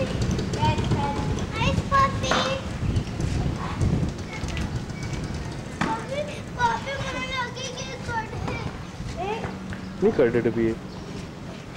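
A young girl talks close by.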